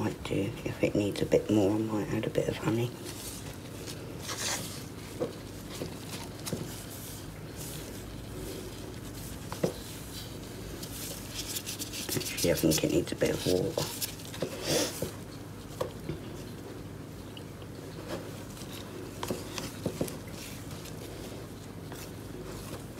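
Dry plant matter crunches and rustles inside a small container.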